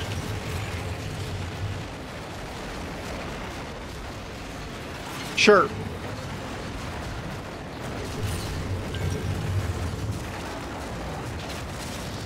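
Heavy machine footsteps thud and rumble.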